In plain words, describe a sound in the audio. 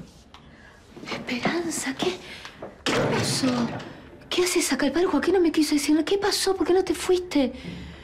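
A woman speaks urgently and with emotion, close by.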